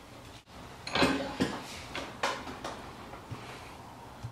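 A vise clamps shut on a metal part with sharp knocks.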